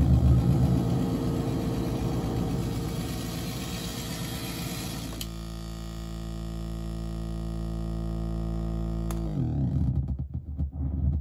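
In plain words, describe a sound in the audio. A synthesizer plays a low, buzzing drone that changes in tone.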